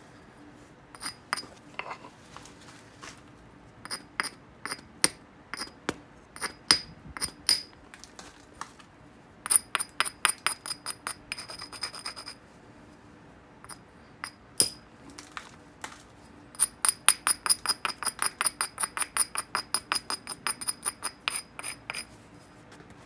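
A stone tool taps and scrapes against the edge of a glassy rock, chipping off small flakes with sharp clicks.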